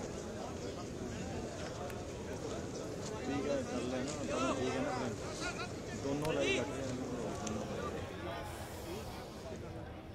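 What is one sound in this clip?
A large crowd murmurs and talks outdoors.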